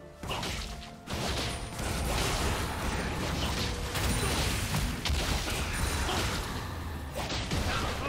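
Video game fight sounds of magic blasts and clashing blows ring out rapidly.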